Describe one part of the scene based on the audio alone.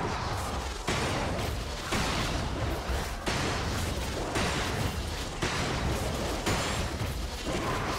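Magic spells crackle and strike in a video game battle.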